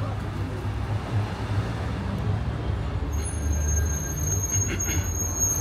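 Traffic rumbles steadily along a nearby street outdoors.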